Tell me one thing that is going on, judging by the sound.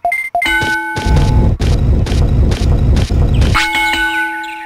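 Game music plays with a pounding beat.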